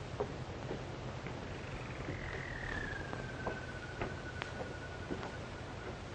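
Footsteps climb wooden stairs outdoors.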